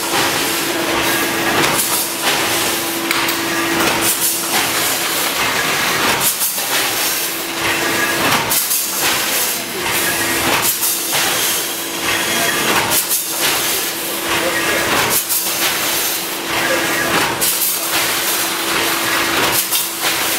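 Sealing jaws on a packing machine snap shut with regular knocks.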